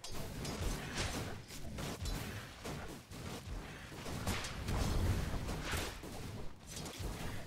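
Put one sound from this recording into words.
Game spells burst and weapons clash in a fantasy battle.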